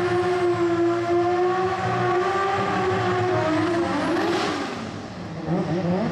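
Tyres screech as a car spins its wheels.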